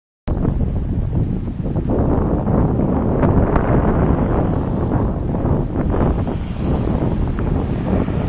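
Wind rushes loudly past a bicycle moving at speed.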